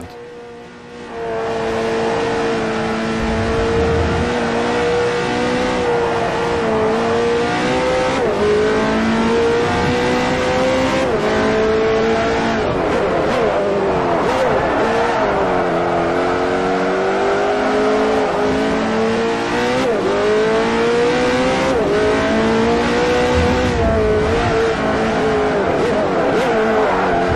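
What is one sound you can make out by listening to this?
A racing car engine roars, rising in pitch and dropping sharply as gears change.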